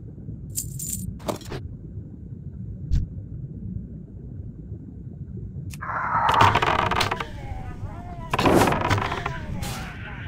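Magic spells crackle and burst in quick strikes.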